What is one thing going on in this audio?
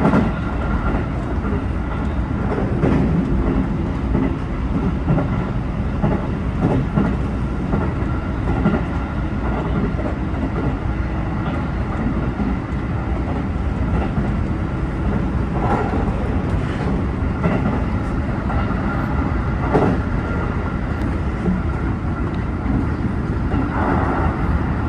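A train rumbles steadily along the track, heard from inside the cab.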